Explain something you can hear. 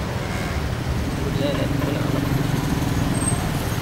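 A motorcycle engine hums close by in traffic.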